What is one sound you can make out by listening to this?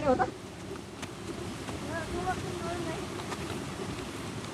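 Young men talk and shout outdoors.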